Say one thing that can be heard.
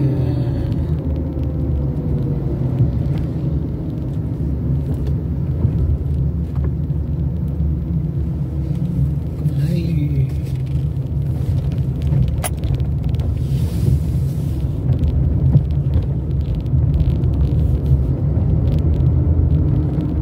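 A car engine hums steadily from inside the moving car.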